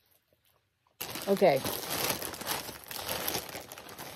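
A plastic mailer bag crinkles and rustles loudly.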